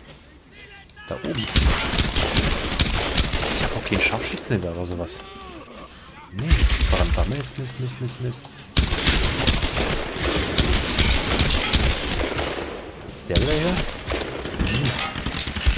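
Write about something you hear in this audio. Pistol shots crack in rapid bursts.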